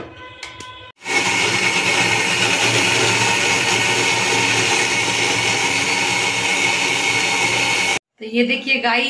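A blender motor whirs loudly and steadily.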